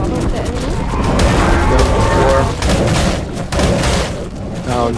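Beasts snarl and roar as they fight.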